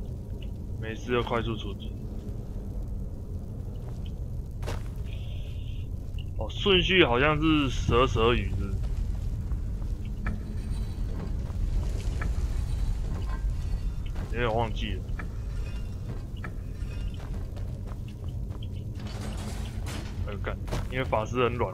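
A young man talks calmly into a microphone, in short bursts.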